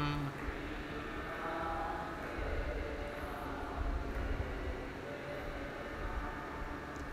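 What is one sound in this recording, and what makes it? A middle-aged man speaks softly into a microphone.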